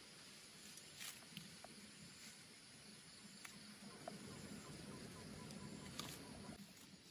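Hands snap off leafy stems.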